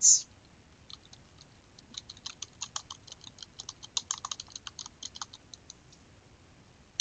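Keys on a keyboard click rapidly as text is typed.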